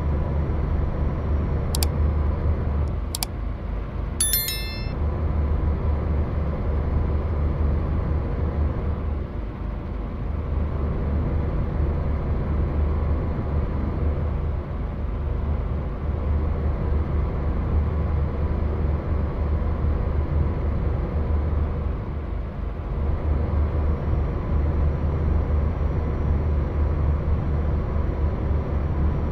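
A truck engine drones steadily while driving on a road.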